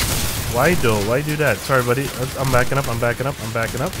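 Explosions burst and crackle with fire.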